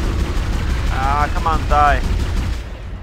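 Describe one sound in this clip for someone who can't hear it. A creature screeches loudly.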